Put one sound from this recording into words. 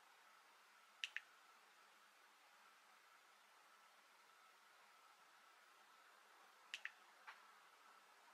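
A device gives short, high electronic clicks.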